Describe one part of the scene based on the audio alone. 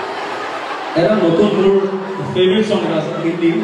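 A young man speaks loudly into a microphone over loudspeakers.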